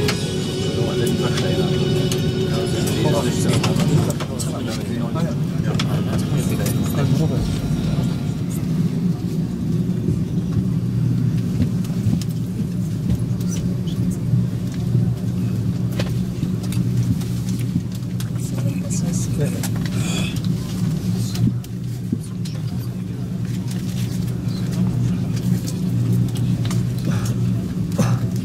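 Jet engines hum steadily from inside an airliner cabin as it taxis.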